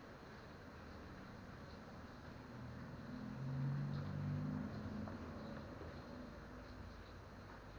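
A fork scrapes and stirs noodles in a plastic bowl.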